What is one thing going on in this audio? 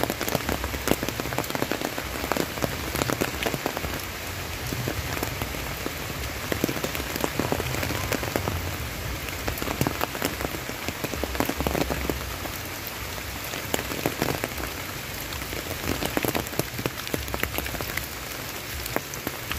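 Rain falls steadily outdoors, pattering on leaves and a wet road.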